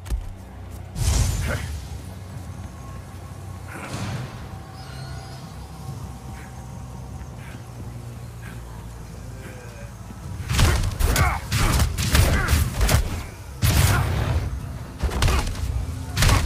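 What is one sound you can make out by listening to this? A gunshot rings out sharply.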